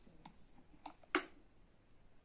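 A kettle lid clicks open.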